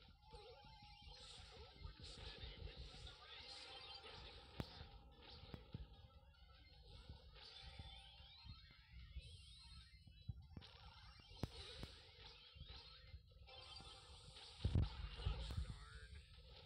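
Mobile video game effects of shots and blasts pop and crackle.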